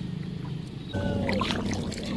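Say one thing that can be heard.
A foot splashes through shallow water.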